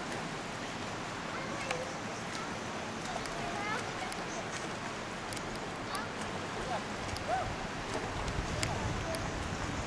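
Water splashes as swimmers move through it.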